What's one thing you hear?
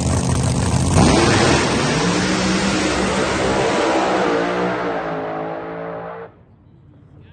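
Drag racing cars launch at full throttle and roar away down the strip.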